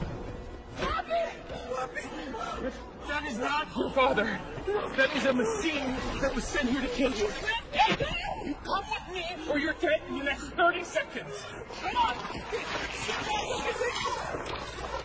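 A woman shouts urgently, close by.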